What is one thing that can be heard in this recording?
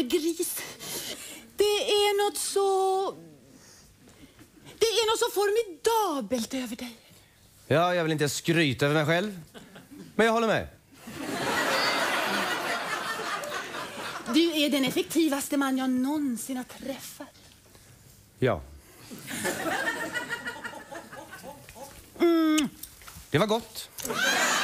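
A woman speaks theatrically and with animation.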